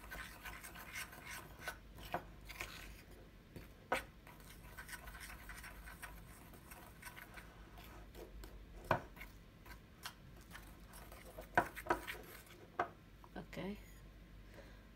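A spoon scrapes and clinks against a ceramic bowl while stirring.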